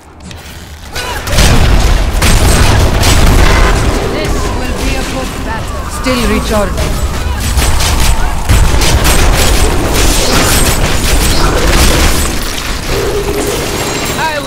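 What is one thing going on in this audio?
Game combat sounds clash and explode with heavy rumbling blasts.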